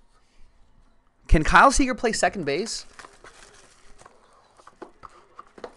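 A cardboard box rustles and scrapes as hands handle it.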